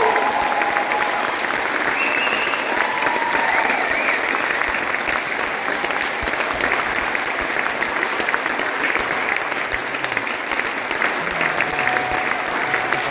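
A jazz band plays in a large echoing hall.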